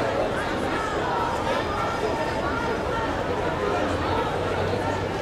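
Footsteps of many people shuffle along the street.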